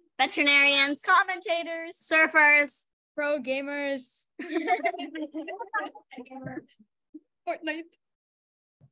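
A young boy speaks over an online call.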